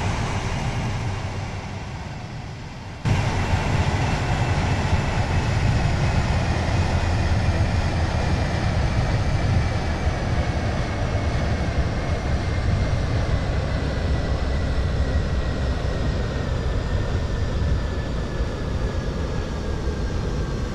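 Train wheels rumble steadily on the rails.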